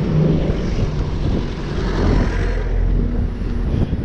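A bus engine rumbles past close by.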